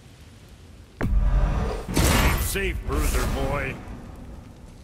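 A magical shimmering whoosh rises and rings out as armor is forged.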